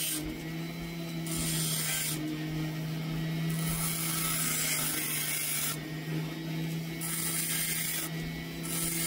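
A grinding bit rasps against stone in bursts.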